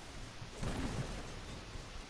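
Gunfire cracks.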